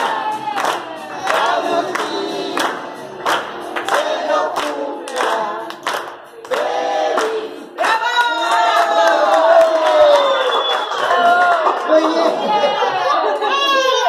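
A group of adults and children sing together loudly.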